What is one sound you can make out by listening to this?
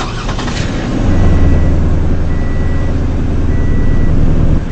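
A car engine rumbles steadily and revs.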